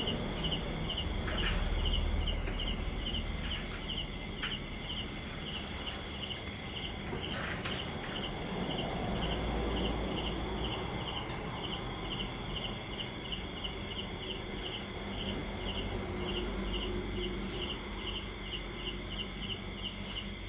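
A strap rustles and scrapes against wood as it is pulled tight.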